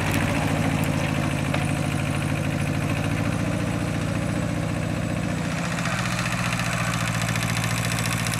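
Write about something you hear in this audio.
A small diesel tractor engine chugs steadily close by.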